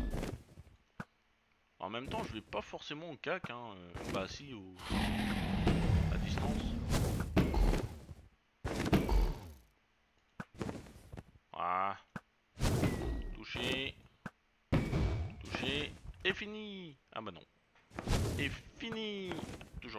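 A bow twangs as arrows are shot.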